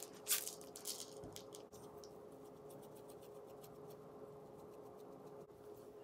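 A pepper grinder crunches.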